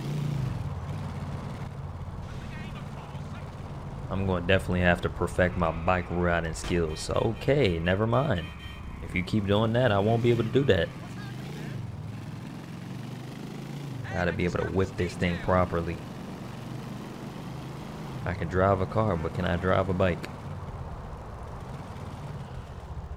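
Motorcycle engines drone steadily.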